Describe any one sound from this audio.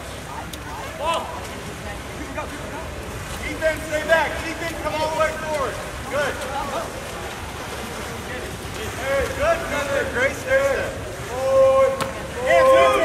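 Spectators shout and cheer outdoors from nearby.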